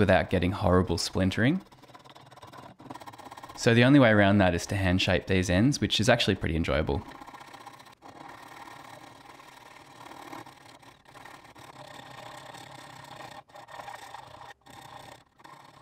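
A hand tool scrapes against wood in short strokes.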